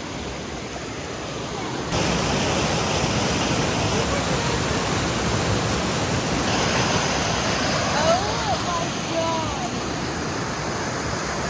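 Water rushes and splashes loudly over rocks in a stream.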